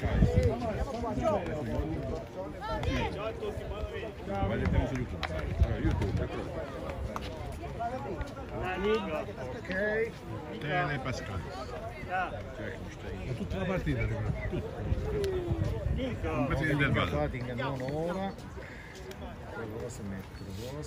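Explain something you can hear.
Men and women nearby talk and call out over each other outdoors.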